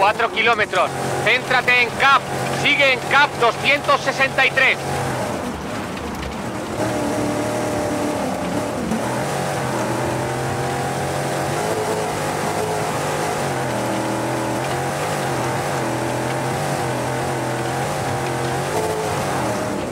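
A rally car engine roars steadily, shifting pitch with the gears.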